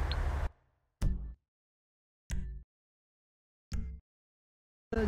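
Short electronic menu beeps sound a few times.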